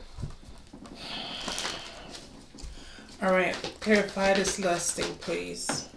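Cards shuffle and rustle in a woman's hands.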